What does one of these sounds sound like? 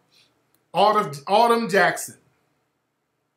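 A man speaks briefly and expressively, close to a microphone.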